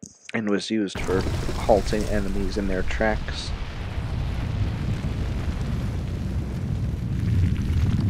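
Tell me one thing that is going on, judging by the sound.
A deep rumble churns as earth heaves up from the ground.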